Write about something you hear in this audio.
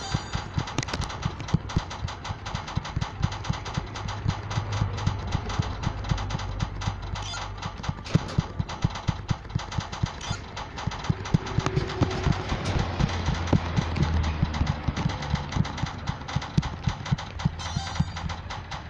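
Pinball flippers click and a ball knocks about repeatedly.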